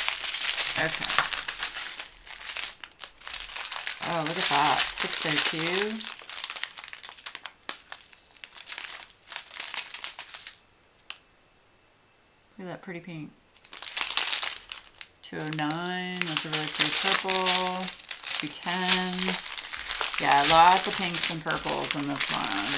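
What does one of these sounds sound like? Plastic bags crinkle and rustle as they are handled.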